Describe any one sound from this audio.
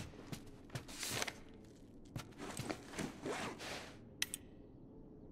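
Paper rustles as a note is picked up and unfolded.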